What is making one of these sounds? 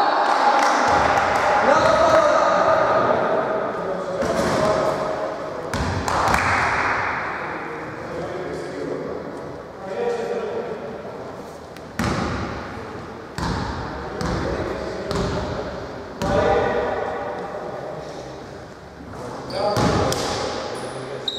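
Players shout to each other across an echoing gym.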